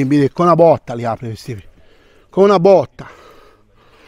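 A middle-aged man talks close by with animation.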